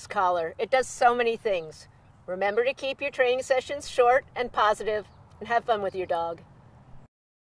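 A woman speaks clearly and warmly into a close microphone.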